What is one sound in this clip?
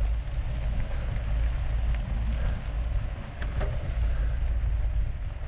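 Wind rumbles loudly over the microphone outdoors.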